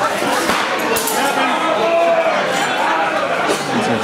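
Swords clash with sharp clacks.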